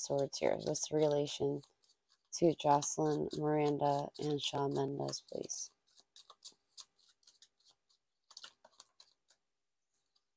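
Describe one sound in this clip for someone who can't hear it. Playing cards riffle and slide as a deck is shuffled.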